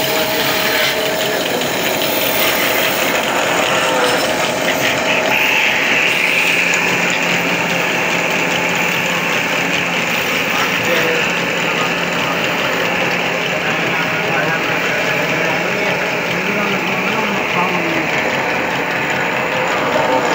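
A lathe motor whirs steadily.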